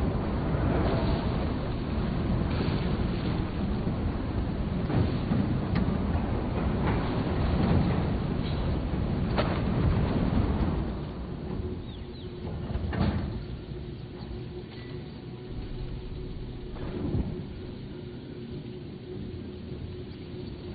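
A fire roars and crackles in a furnace.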